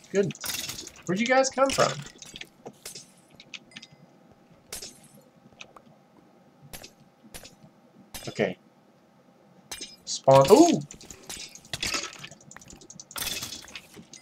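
A sword strikes a rattling skeleton with dull thuds.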